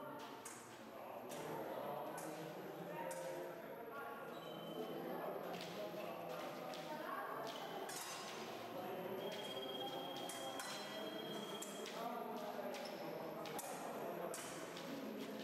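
Fencing blades clash and click sharply, over and over.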